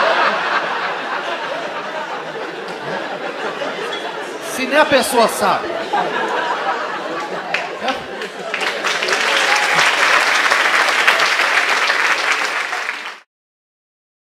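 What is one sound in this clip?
An audience laughs in a room.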